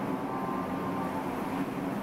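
Milk pours and splashes into a large vessel.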